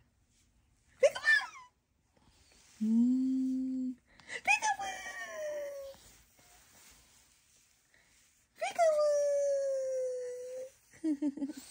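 A baby squeals with delight.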